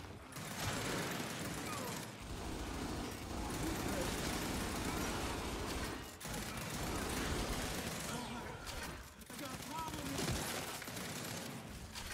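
Guns fire in rapid bursts with loud bangs.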